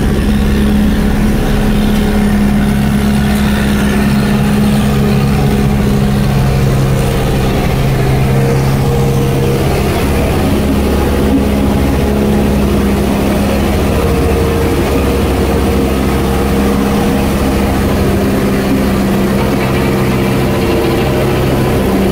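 A road roller's diesel engine rumbles steadily close by.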